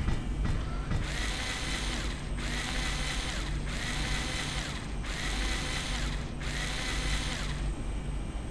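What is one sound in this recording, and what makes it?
An energy beam pulses in rhythmic bursts.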